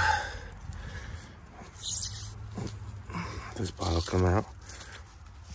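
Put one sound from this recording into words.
Dry soil and roots rustle and crumble as a root is pulled from the ground.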